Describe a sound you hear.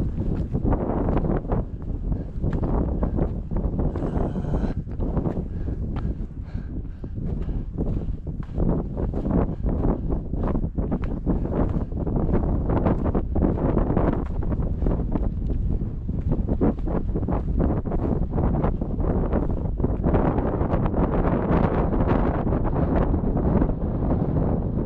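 Strong wind buffets the microphone outdoors, rumbling and gusting.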